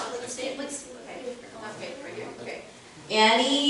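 A girl speaks into a microphone.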